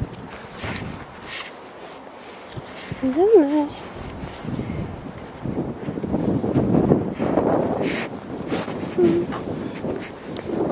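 Footsteps crunch through dry leaves outdoors.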